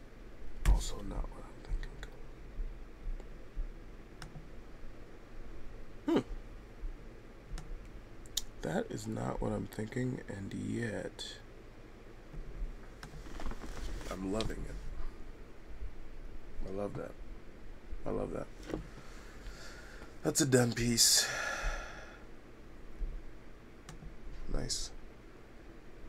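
A man talks calmly close to a microphone, with pauses.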